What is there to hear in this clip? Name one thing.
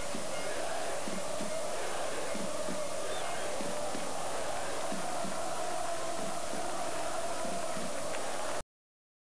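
A large crowd roars and chants across an open stadium.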